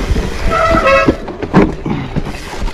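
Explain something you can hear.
A bicycle rattles and clatters over wooden planks.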